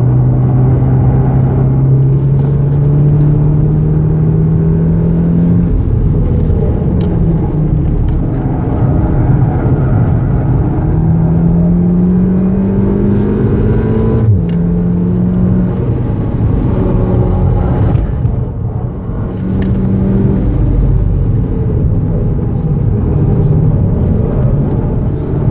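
A car engine roars loudly from inside the cabin, rising and falling in pitch as the driver shifts gears.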